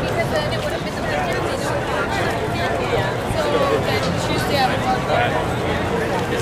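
A crowd of men and women talks and chatters all around, outdoors.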